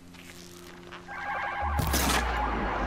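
A mechanical beast lets out a metallic growl.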